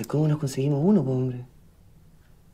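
A young man speaks calmly and firmly at close range.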